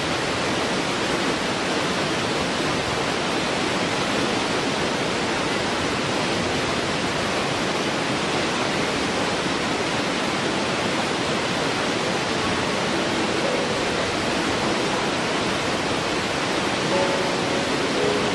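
A waterfall roars steadily as water rushes over rocks.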